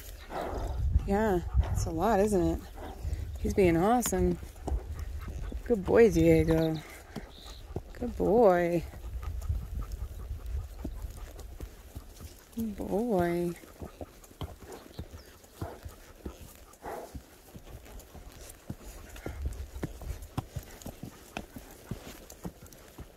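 A horse walks steadily, its hooves thudding and brushing through dense scrub.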